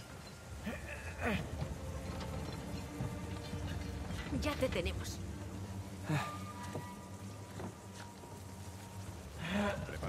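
A heavy wooden cart rolls and rumbles over stone.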